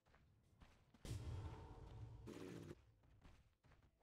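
Fire roars in a burst of flame.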